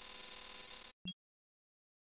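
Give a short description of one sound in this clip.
A short electronic chime sounds once.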